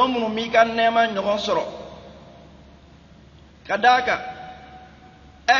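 An elderly man preaches with animation into a microphone, in short bursts with pauses.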